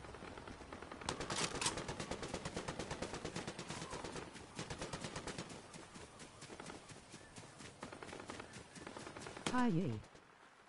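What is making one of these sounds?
Quick footsteps patter on grass and ground.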